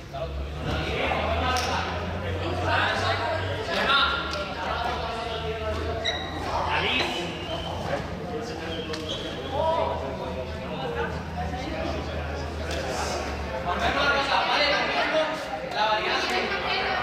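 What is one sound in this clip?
Teenagers shout and chatter in a large echoing hall.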